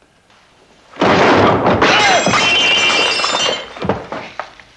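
Glass shatters with a loud crash.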